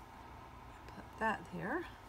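Scissors snip through lace.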